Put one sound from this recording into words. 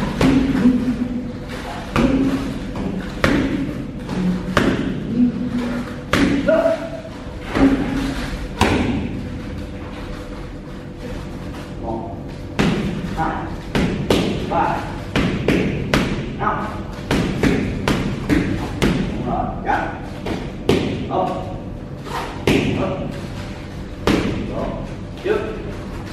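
Gloved punches slap sharply against padded mitts in quick bursts.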